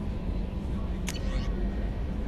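A game menu beeps as a selection changes.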